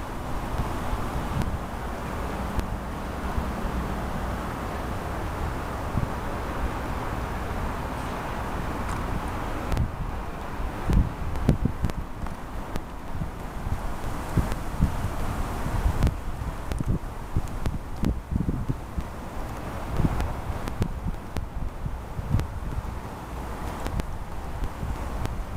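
Water rushes and splashes steadily past a moving boat.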